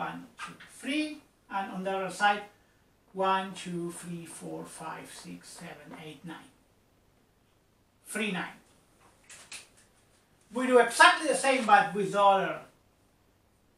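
A man speaks calmly, explaining.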